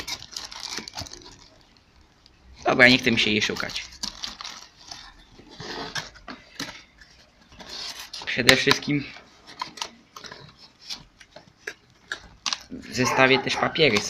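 Cardboard rustles and scrapes as hands open a box.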